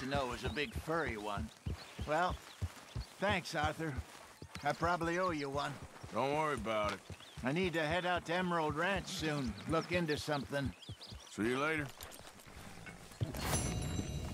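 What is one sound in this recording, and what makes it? A horse's hooves clop slowly on soft ground.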